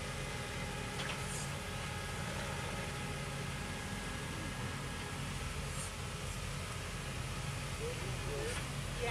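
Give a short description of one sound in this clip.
An engine rumbles low and steady as an off-road vehicle crawls down bare rock.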